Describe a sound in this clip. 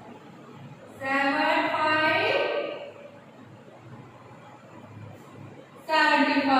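A woman speaks clearly and slowly.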